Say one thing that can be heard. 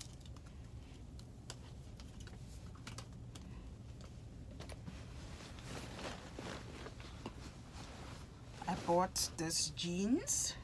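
Fabric and a bag rustle as clothes are packed.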